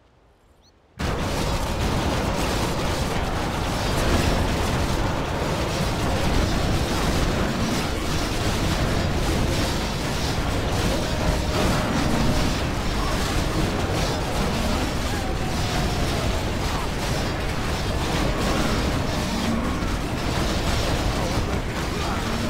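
Swords clash and spells crackle in a busy fantasy battle.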